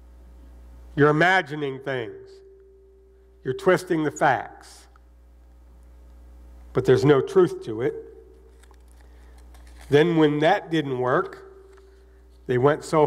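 A man speaks slowly and calmly into a microphone, in short phrases with pauses.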